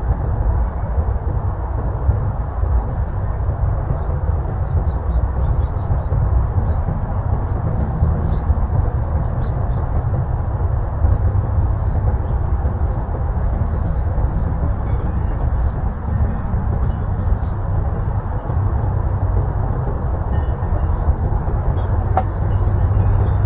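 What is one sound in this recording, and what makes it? Dry leaves rustle in the wind.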